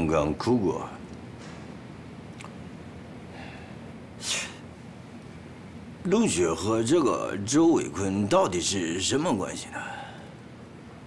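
A middle-aged man speaks firmly and sternly, close by.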